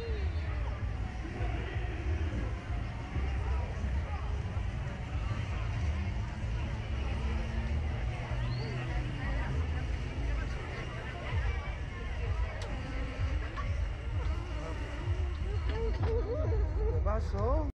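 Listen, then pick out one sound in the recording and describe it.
A young woman laughs and talks close by.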